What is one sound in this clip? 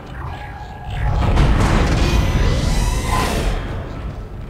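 A heavy metal door slides open with a loud mechanical hiss.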